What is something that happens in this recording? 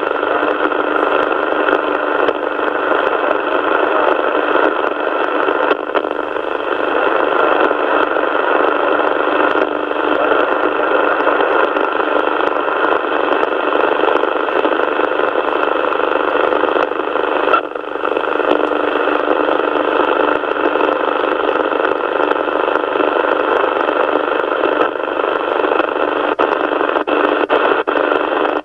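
A radio receiver hisses and crackles with a muffled, noisy signal.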